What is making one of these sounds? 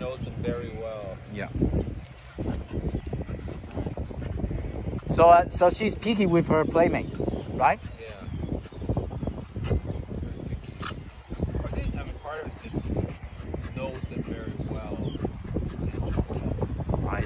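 Dogs growl and yip as they wrestle playfully.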